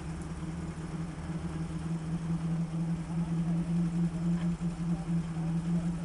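An off-road vehicle's engine idles with a steady low rumble.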